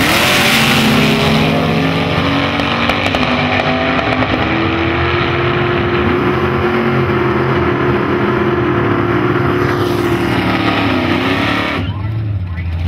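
Two race car engines roar as the cars speed away and fade into the distance.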